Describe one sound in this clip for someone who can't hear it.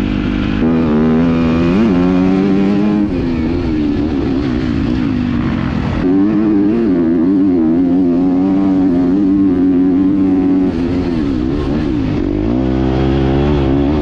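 Wind rushes past the rider.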